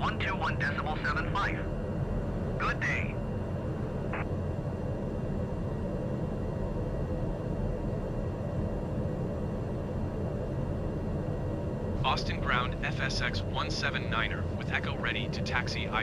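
A turboprop engine idles.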